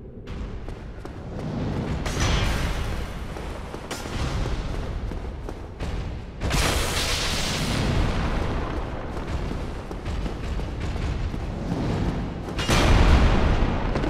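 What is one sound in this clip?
Metal weapons clash and clang against a shield.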